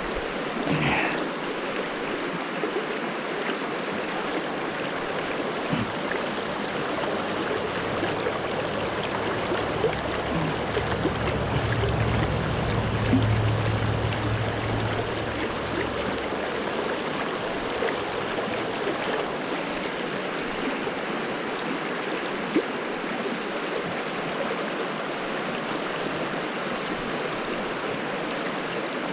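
A shallow stream ripples and splashes steadily over rocks close by.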